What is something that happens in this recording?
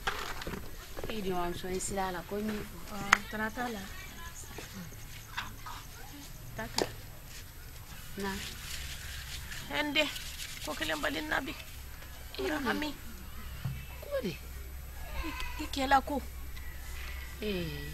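Two women talk calmly together nearby.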